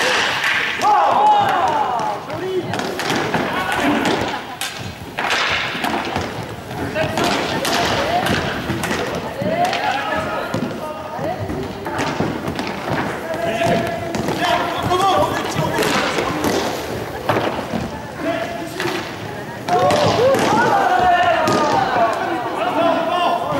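Skate wheels roll and scrape across the floor in a large echoing hall.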